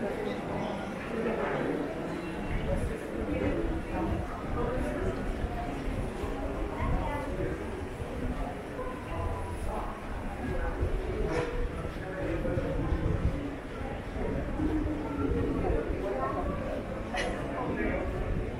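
Many people chatter and walk about nearby.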